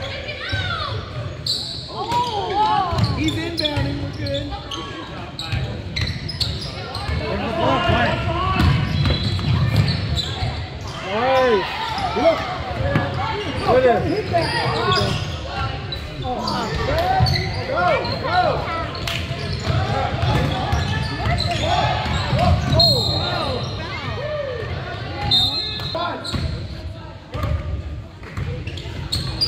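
Sneakers squeak on a hardwood floor in an echoing gym.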